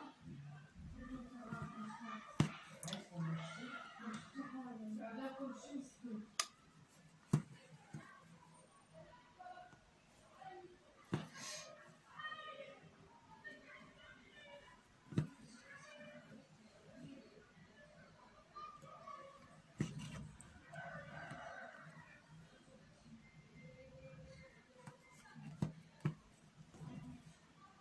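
Thread rustles softly as it is pulled through fabric.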